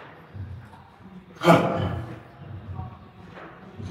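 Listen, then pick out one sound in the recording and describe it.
A barbell clanks as a man lifts it off a rack.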